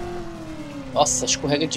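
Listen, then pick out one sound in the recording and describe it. Car tyres screech sharply on a road.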